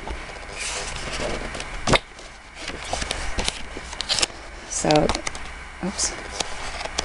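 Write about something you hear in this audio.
Sheets of paper rustle and flap as they are flipped one by one.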